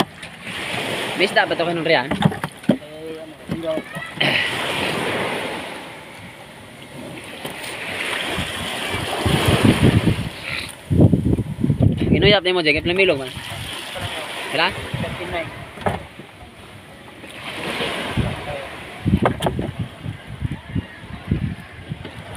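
Water laps against the hull of a small boat.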